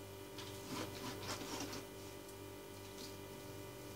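A knife slices through raw meat on a cutting board.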